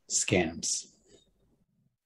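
A young man speaks briefly over an online call.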